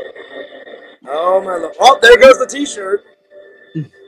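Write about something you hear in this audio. A young man laughs loudly over an online call.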